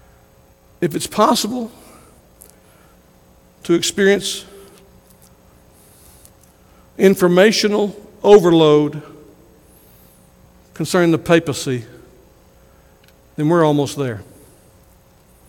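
A man preaches with emphasis in short bursts through a microphone.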